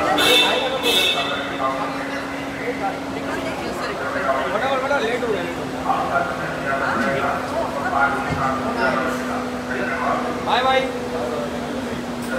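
A crowd of young men chatter and call out close by, echoing.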